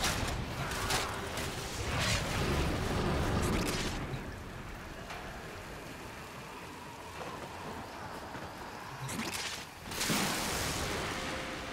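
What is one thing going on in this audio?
A blade slashes and clangs against metal.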